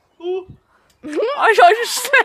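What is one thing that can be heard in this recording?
A girl screams loudly and shrilly.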